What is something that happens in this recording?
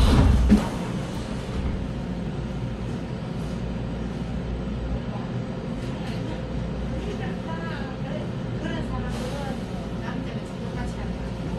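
A subway train standing still at a platform hums low and steady.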